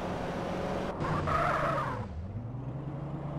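Car tyres screech during a sharp turn.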